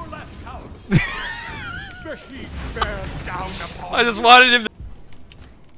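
A young man laughs with animation through a headset microphone.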